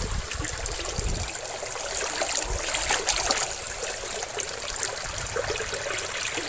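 Water rushes and splashes steadily over rocks close by.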